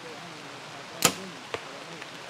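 A bow string snaps as an arrow is released.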